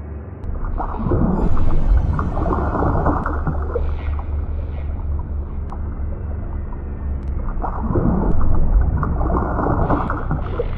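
Bubbles rush and gurgle underwater.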